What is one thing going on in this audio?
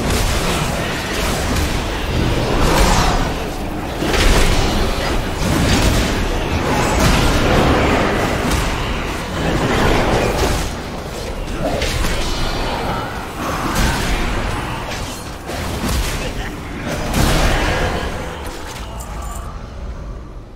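Loud fantasy combat effects crash, whoosh and clang in rapid bursts.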